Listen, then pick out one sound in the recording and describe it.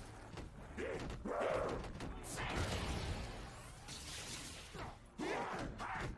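Monsters growl and snarl.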